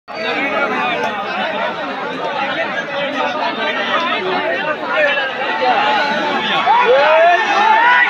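A large crowd outdoors chatters and shouts loudly.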